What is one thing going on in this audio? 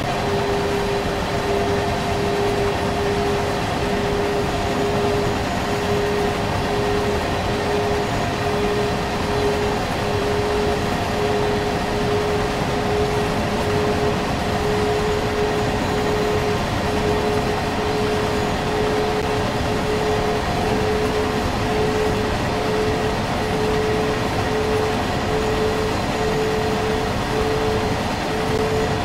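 Train wheels rumble and clatter steadily along the rails.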